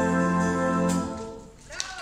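A brass band plays a final held chord outdoors.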